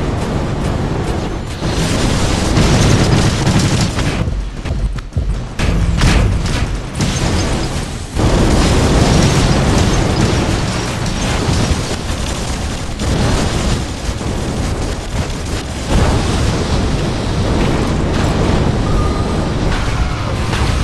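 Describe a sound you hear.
Explosions boom and guns fire rapidly in a loud battle.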